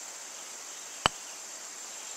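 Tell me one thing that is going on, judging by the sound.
A putter taps a golf ball.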